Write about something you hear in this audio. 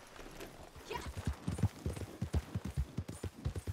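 A horse's hooves thud steadily on the ground.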